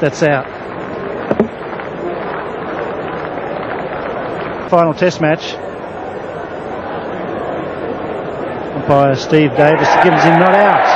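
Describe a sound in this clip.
A large crowd cheers and applauds in an open stadium.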